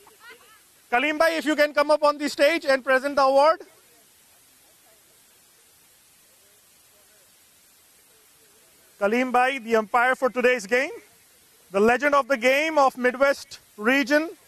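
A man speaks loudly and with animation into a microphone, heard through a loudspeaker outdoors.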